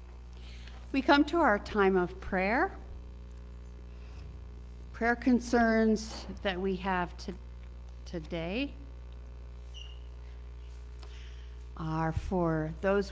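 An elderly woman speaks slowly and calmly into a microphone.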